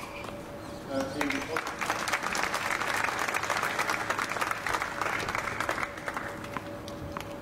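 A crowd applauds and cheers outdoors.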